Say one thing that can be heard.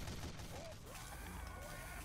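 Game gunfire rattles in bursts.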